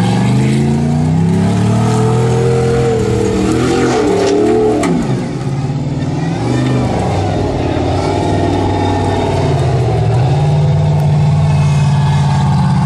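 An off-road buggy engine roars and revs hard, rising and falling in pitch.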